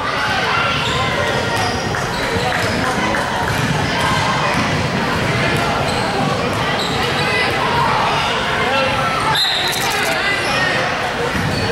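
Sneakers squeak on a gym floor, echoing through a large hall.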